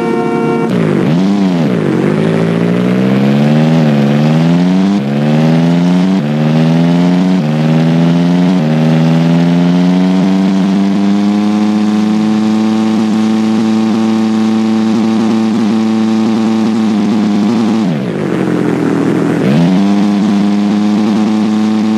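An engine revs and shifts gears as a vehicle speeds up.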